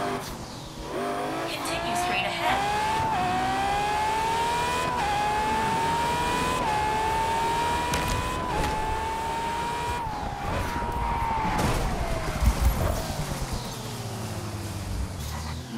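A sports car engine revs hard, climbing through the gears.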